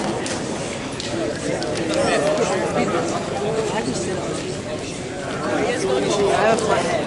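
A crowd of young people chatters loudly in a large echoing hall.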